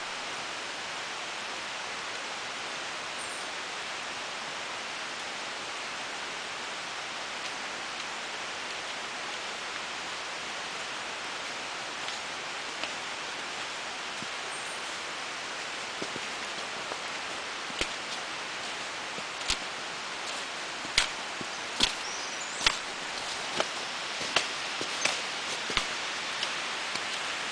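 Footsteps crunch through snow, coming closer.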